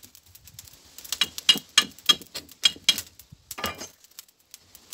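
A metal grill rattles and clinks.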